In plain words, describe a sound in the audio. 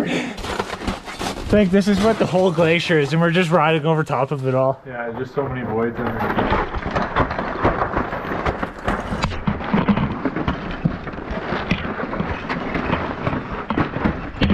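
Boots crunch on snow and ice.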